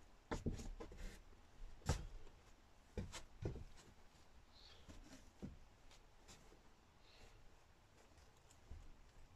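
Cushions thump and rustle as a person moves them about.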